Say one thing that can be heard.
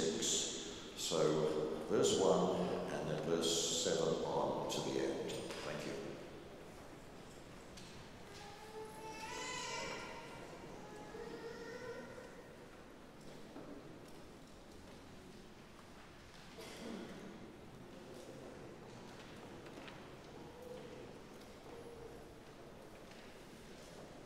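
A man speaks calmly from a distance in a large echoing hall.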